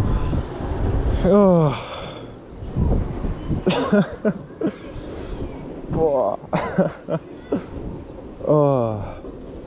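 Wind rushes and buffets against the microphone.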